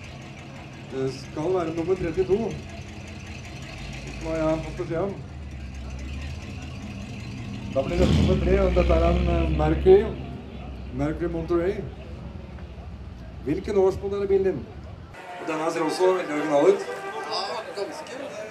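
A man talks nearby in short bursts.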